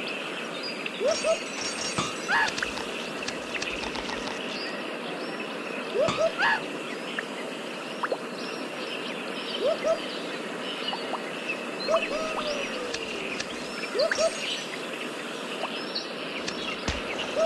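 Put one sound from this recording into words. A game's bright sound effects chime as bananas are collected.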